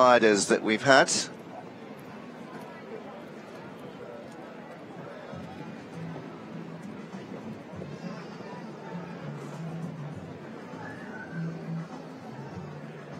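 A crowd murmurs in the distance.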